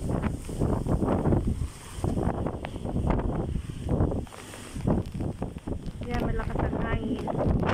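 Strong wind gusts and buffets loudly outdoors.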